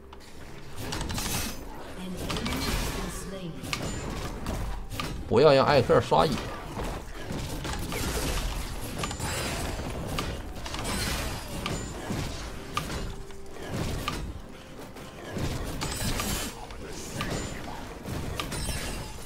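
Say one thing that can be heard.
Game fight effects clash and whoosh.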